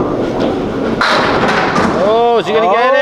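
Bowling pins crash and clatter as they are struck.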